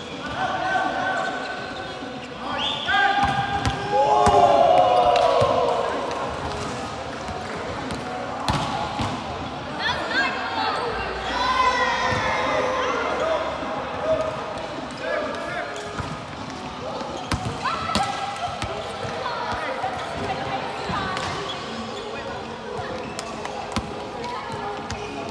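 Young men and women call out and shout to each other in a large echoing hall.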